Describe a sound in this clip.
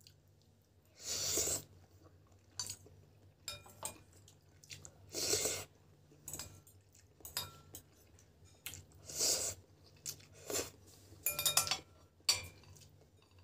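A woman slurps noodles loudly, close by.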